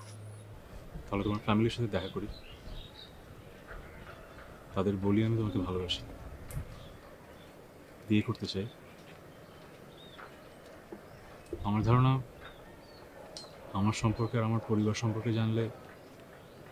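A man answers close by, in a low, firm voice.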